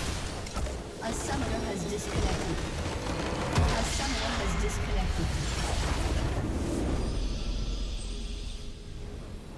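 Magical blasts whoosh and crash loudly in a video game battle.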